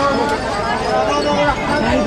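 A middle-aged woman talks close by.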